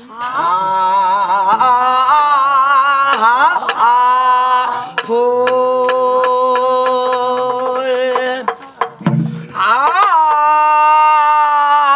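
A woman sings loudly with long, wavering held notes, close by.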